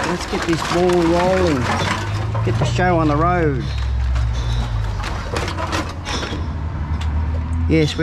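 A recycling machine hums and whirs.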